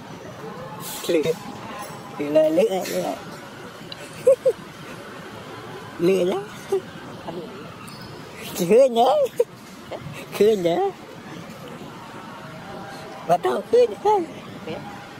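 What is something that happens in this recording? A baby monkey squeals in short, high cries.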